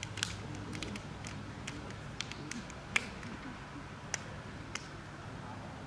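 Hands slap together in short, sharp claps.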